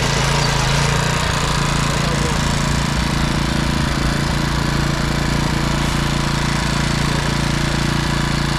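A small petrol engine runs loudly and steadily.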